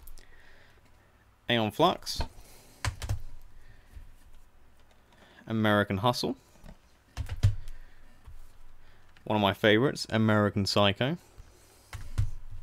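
A plastic case rustles and clicks as it is handled.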